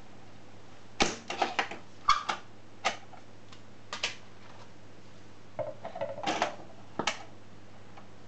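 Vinyl records are handled and set down on a turntable, with knocks and rattling.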